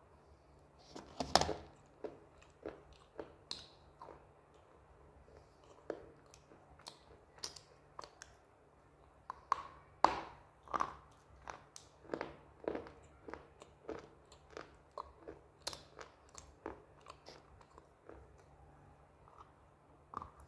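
A woman chews food with crunchy, wet sounds close up.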